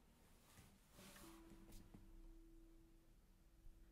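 A nylon-string guitar plays single notes that ring out softly.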